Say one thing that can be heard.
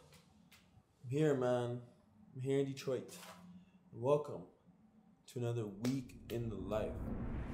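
A young man talks casually and close to the microphone.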